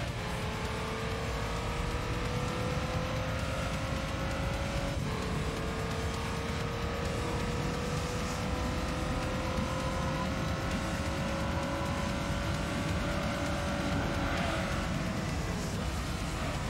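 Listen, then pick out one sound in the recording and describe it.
A racing car engine whines steadily higher, dropping briefly as it shifts gear.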